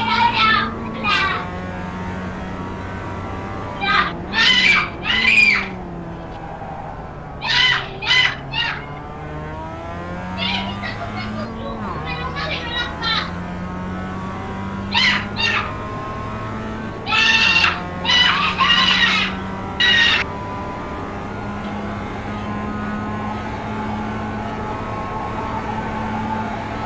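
A race car engine drones steadily, its pitch rising and falling through the corners.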